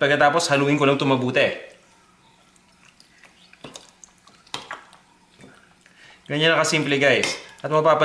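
A metal spoon clinks against a glass bowl while stirring.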